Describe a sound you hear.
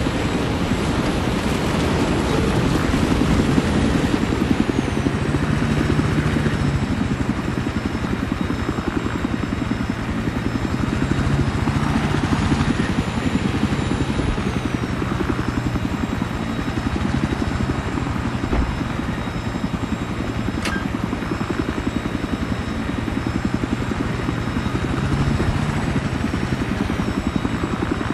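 A helicopter's rotor thumps loudly and steadily throughout.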